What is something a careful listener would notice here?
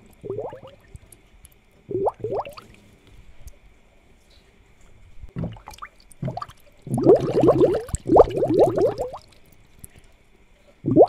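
Water bubbles softly in an aquarium.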